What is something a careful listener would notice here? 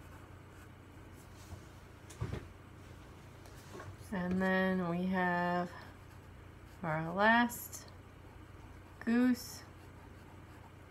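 A brush strokes softly on paper.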